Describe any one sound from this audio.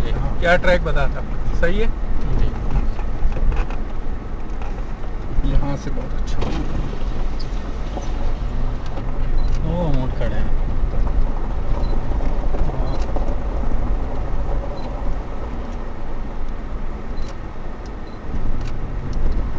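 Tyres crunch and rattle over rough gravel.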